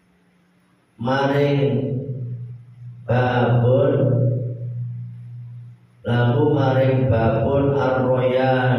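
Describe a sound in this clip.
A young man chants melodically in long phrases through a microphone.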